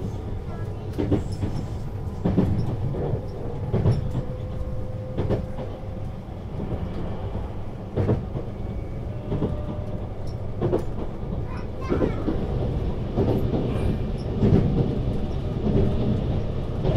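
Train wheels knock over rail joints.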